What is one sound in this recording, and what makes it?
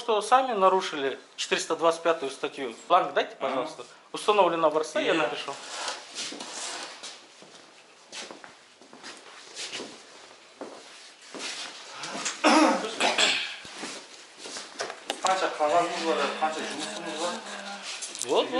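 A man speaks firmly close by.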